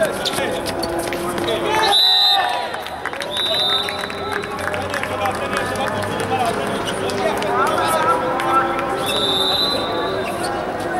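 Many young men shout and call out across an open court.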